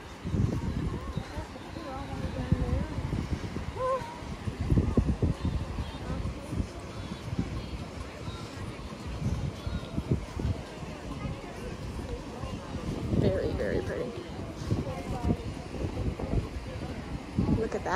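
A crowd of beachgoers chatters in the distance.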